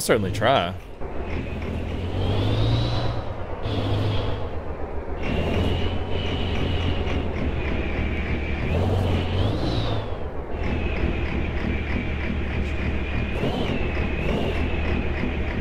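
A truck engine rumbles steadily and whines.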